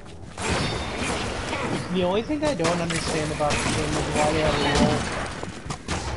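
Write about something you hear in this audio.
A magic spell bursts with a fizzing whoosh.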